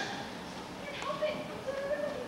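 A boy speaks loudly from a stage in an echoing hall.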